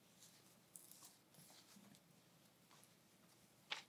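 Cloth rustles softly as it is unfolded.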